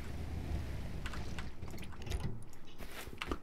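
A boat engine rumbles low and steady, then fades away.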